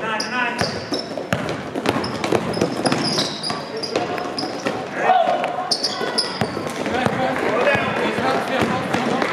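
Young men call out and shout in a large echoing hall.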